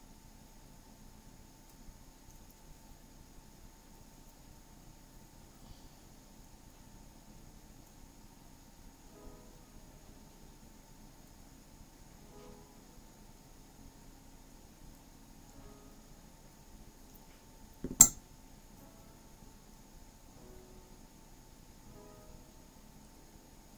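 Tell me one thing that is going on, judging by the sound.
Small pliers click and tap against tiny metal parts.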